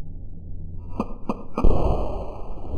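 A revolver fires several quick shots.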